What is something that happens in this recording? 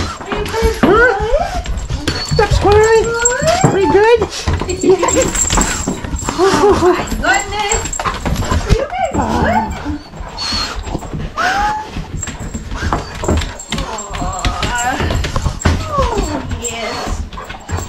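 A hand rubs and pats a dog's fur.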